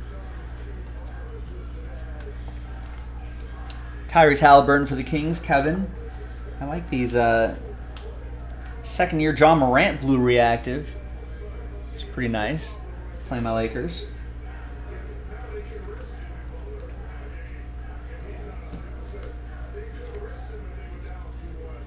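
Trading cards rustle and slide between fingers.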